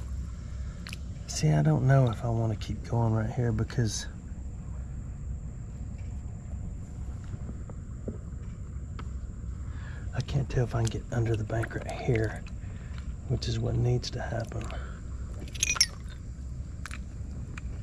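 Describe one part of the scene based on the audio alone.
Shallow water trickles steadily over stones.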